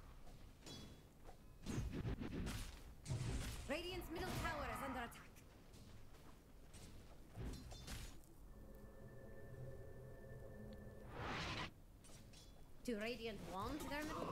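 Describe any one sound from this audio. Weapons clash and spells burst in a fast fantasy battle.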